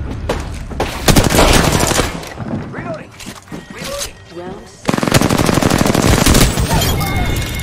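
Rapid automatic gunfire rings out.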